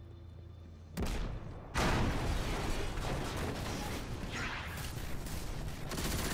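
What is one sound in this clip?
Gunfire and explosions roar loudly.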